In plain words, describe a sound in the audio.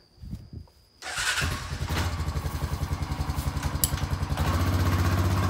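A quad bike engine starts up and idles with a steady rumble.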